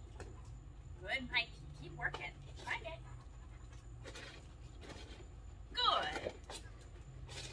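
A young woman speaks encouragingly to a dog nearby.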